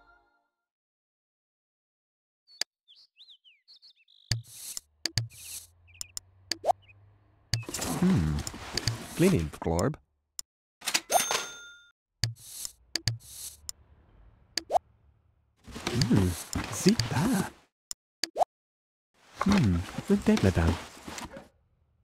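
Soft clicks sound as game menu items are chosen.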